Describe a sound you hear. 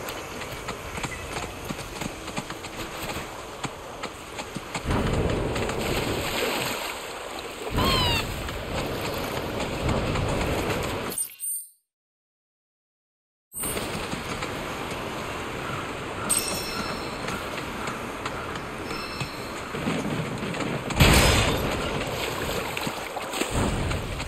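A large bird's feet patter quickly over grass and wooden boards.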